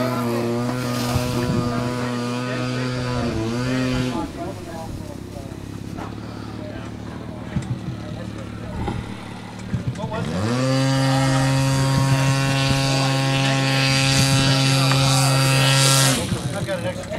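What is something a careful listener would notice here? A model airplane engine whines overhead, its pitch rising and falling.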